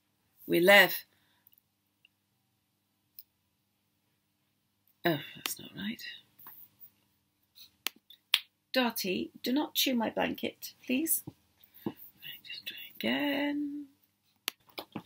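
A middle-aged woman speaks calmly over an online call.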